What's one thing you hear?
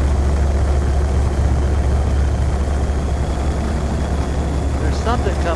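A spaceship engine hums steadily and deeply.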